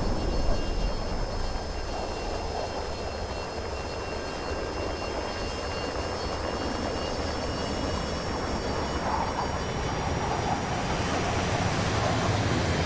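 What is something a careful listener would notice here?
A jet engine roars steadily as a plane flies overhead.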